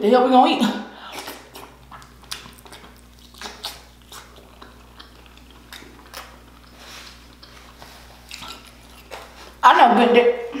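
A young man chews and smacks his lips loudly close to a microphone.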